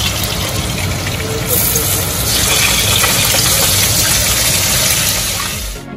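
Metal tongs clink against a pan.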